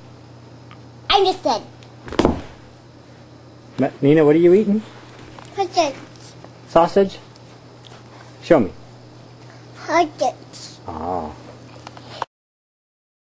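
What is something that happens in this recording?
A toddler girl babbles and talks close by.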